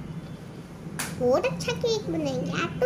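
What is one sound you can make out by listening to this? A young girl speaks cheerfully close by.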